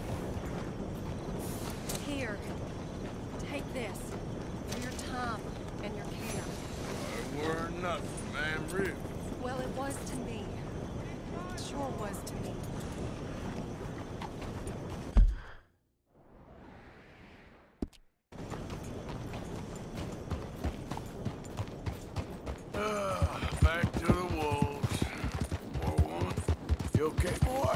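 A horse's hooves clop steadily on dirt.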